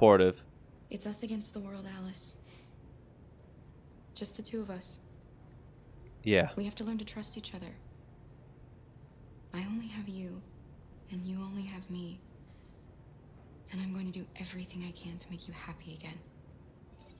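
A woman speaks softly and gently.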